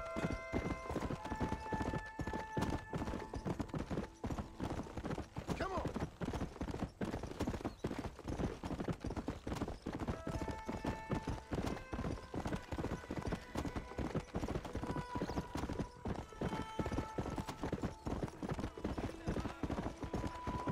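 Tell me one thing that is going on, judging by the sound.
Horse hooves thud rapidly on a dirt trail in a steady gallop.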